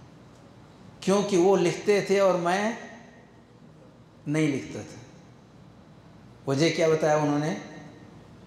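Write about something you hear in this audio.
An elderly man speaks calmly into a microphone, in short phrases with pauses.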